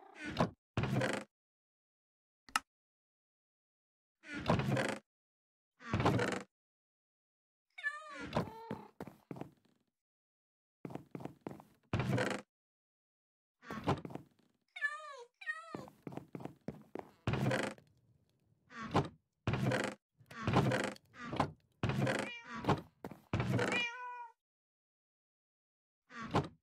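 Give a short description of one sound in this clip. A wooden chest creaks open and thuds shut.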